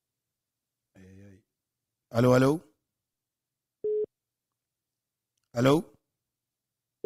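A man speaks briefly into a microphone in short bursts.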